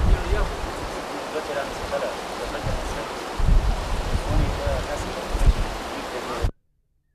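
A young man speaks quietly close by.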